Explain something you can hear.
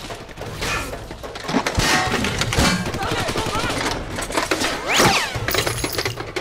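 Bullets smack into a tree trunk and splinter the wood.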